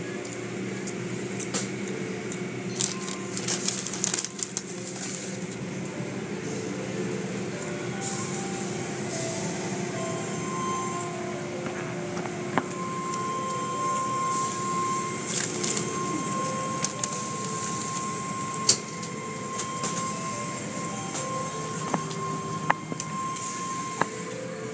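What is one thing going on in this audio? Car wash machinery hums steadily.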